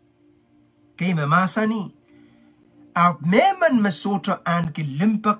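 A man speaks close to the microphone with animation.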